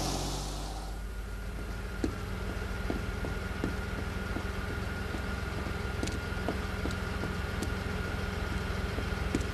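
A car engine idles close by with a steady low hum.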